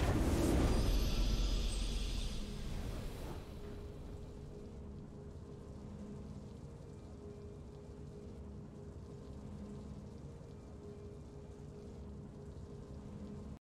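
A triumphant game fanfare plays and fades.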